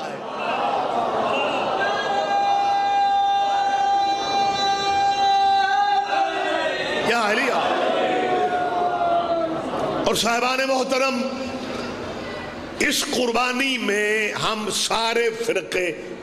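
A middle-aged man chants with drawn-out held notes through a microphone and loudspeakers.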